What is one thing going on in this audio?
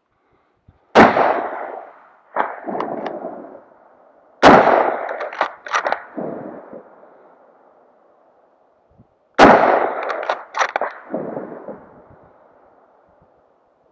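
A rifle fires loud shots that echo across a valley.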